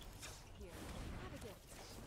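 A whooshing magic blast streaks past.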